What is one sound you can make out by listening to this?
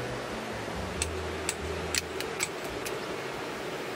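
A lighter clicks several times.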